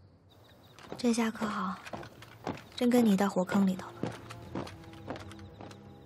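Footsteps patter on stone paving.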